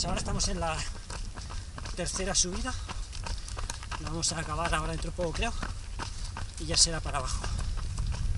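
A man talks with animation, close by and a little out of breath.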